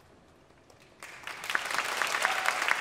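An audience applauds loudly.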